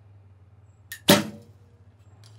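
A bowstring snaps sharply as an arrow is released.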